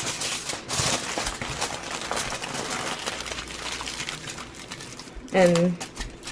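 Aluminium foil crinkles and rustles as hands fold it.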